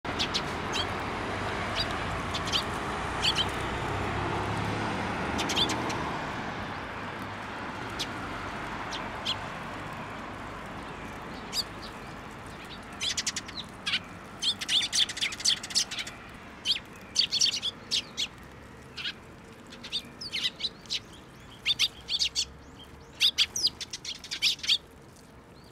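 Young sparrows chirp and cheep close by.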